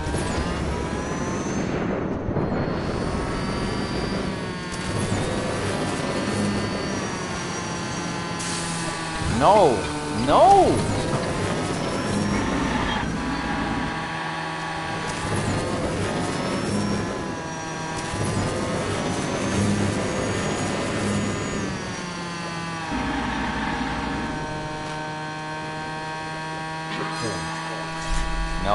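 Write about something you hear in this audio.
A racing car engine whines steadily at high speed.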